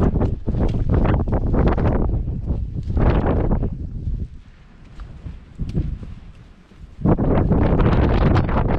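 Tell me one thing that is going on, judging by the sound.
Wind gusts loudly across an open outdoor ridge.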